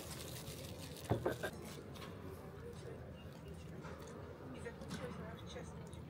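Plastic wrapping crinkles close by.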